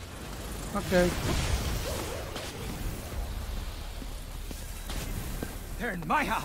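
A fiery blast bursts with a loud whoosh and crackle.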